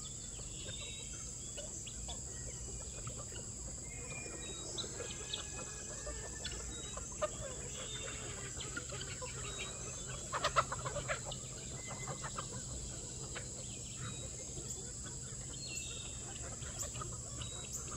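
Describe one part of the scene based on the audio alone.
A flock of chickens clucks and chirps outdoors.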